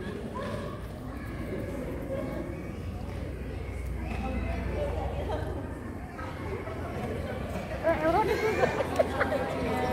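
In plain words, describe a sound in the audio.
Young children chatter and call out nearby in a large echoing hall.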